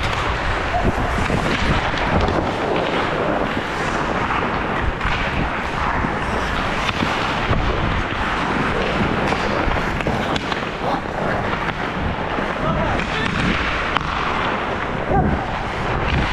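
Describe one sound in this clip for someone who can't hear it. Hockey sticks clack against pucks and ice.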